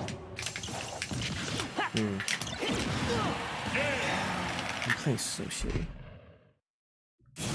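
Loud blasts and explosions crash in a video game.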